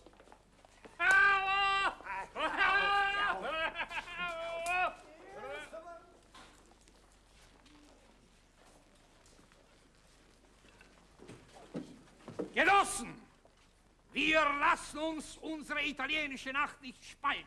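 A middle-aged man speaks loudly and with animation, addressing a crowd.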